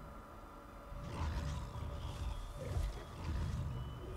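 A large wolf growls and snarls deeply.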